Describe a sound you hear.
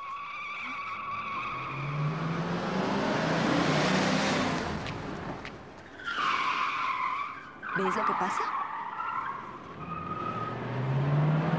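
A car engine hums as a car drives past on a street.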